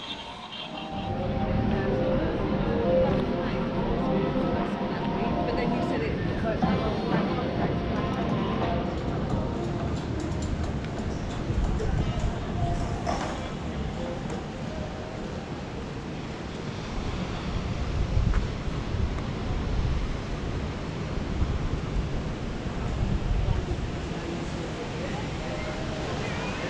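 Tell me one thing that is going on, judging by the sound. Waves wash gently onto a beach in the distance.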